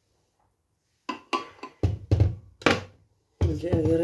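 A glass jar knocks down onto a hard cooktop.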